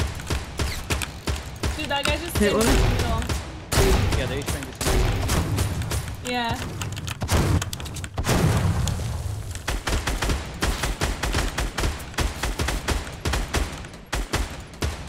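Gunshots crack repeatedly in a video game.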